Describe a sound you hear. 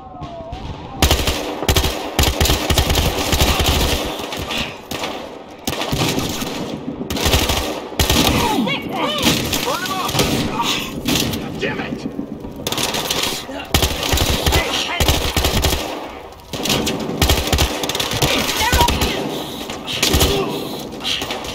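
An automatic rifle fires loud, rapid bursts.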